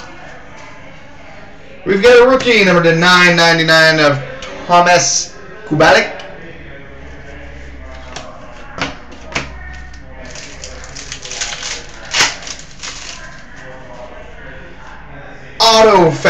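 Cards rustle and tap as a young man handles them.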